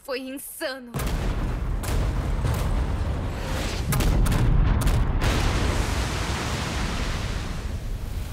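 A huge explosion booms and rumbles.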